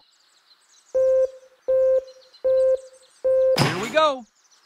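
Countdown beeps sound four times at an even pace.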